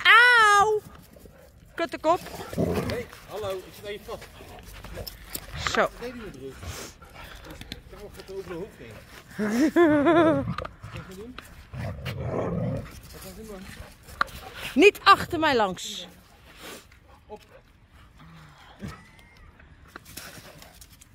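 Dogs growl as they play-fight close by.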